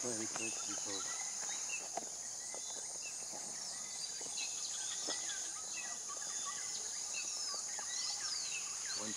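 Elephants' heavy footsteps crunch on gravel.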